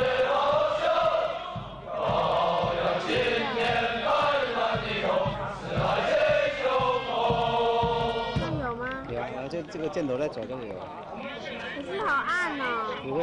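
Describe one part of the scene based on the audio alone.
A large group of young men sing loudly in unison outdoors.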